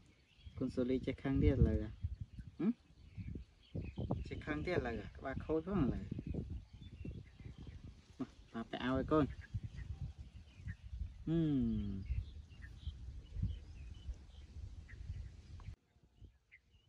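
A young man talks softly and playfully up close.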